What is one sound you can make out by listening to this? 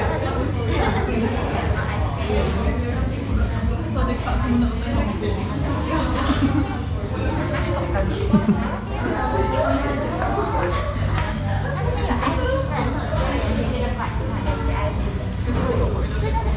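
A woman talks nearby in a lively voice.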